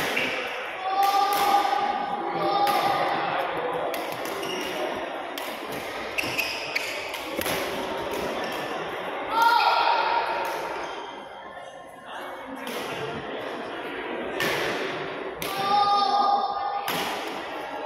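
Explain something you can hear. Sneakers squeak sharply on a hall floor.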